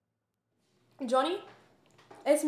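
A young woman talks on a phone with animation.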